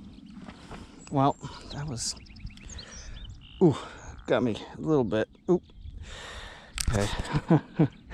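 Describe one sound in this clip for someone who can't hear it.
A man talks with animation close to the microphone, outdoors.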